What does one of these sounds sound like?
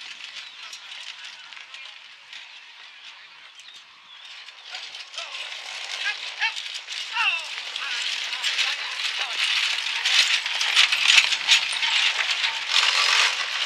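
Carriage wheels rattle over dirt.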